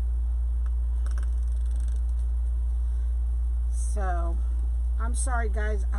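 Mesh fabric rustles as it is moved.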